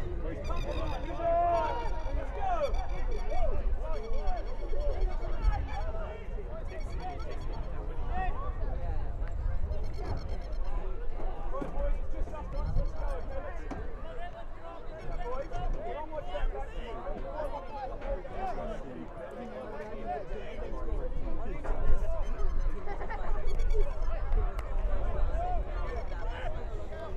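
A small crowd of spectators chatters and calls out at a distance, outdoors.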